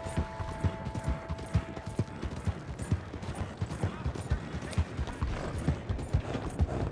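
Horse hooves gallop steadily on gravel.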